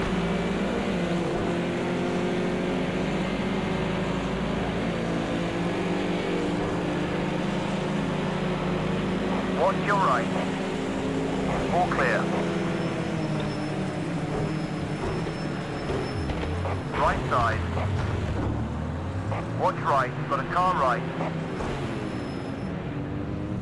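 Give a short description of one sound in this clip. A racing car engine roars steadily.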